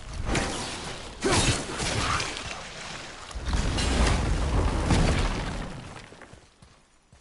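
A magical blast whooshes and rumbles deeply.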